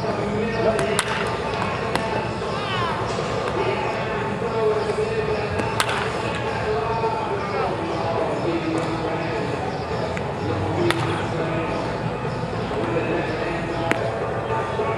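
A bat cracks sharply against a baseball, again and again.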